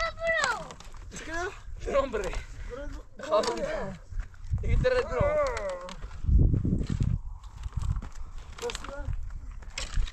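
A young child squeals and laughs close by.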